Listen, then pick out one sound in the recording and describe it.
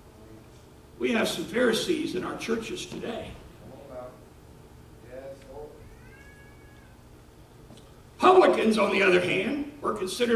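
A middle-aged man speaks with animation into a microphone, heard in a room with slight echo.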